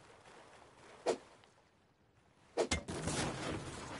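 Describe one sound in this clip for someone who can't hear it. A hatchet strikes wood with sharp knocks.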